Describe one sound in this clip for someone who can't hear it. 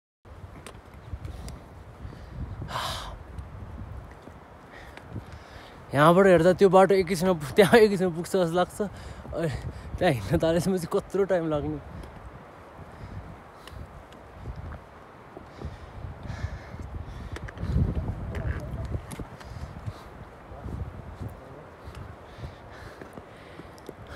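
Boots crunch and scrape on a rocky trail.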